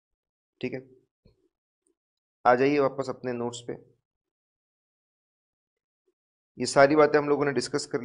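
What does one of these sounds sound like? A man lectures into a microphone in a calm, explaining manner.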